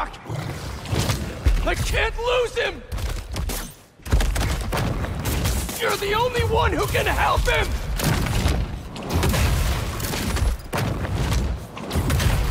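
Heavy blows and thuds land in a fight.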